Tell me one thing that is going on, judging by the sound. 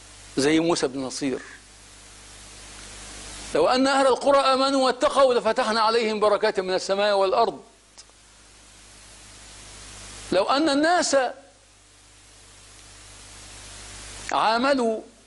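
A middle-aged man speaks calmly and clearly into a close microphone, in bursts with pauses.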